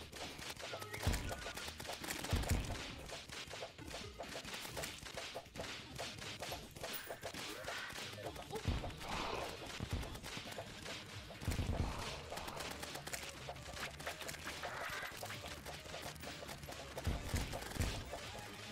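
Deep game explosions boom now and then.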